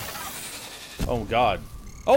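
A fiery blast bursts with a roar.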